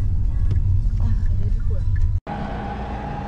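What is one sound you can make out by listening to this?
A car engine hums while driving.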